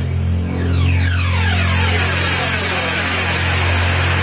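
Electronic sounds glide down in pitch in a sweeping whoosh.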